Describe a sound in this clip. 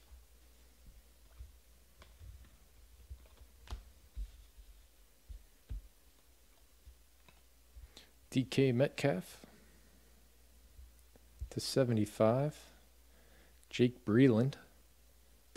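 Trading cards slide and tap against each other as they are flicked through.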